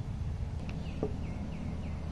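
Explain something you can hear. A glass jar is set down on a wooden table with a soft knock.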